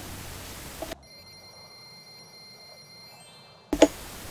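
A game's treasure counter tallies up with bright tinkling chimes.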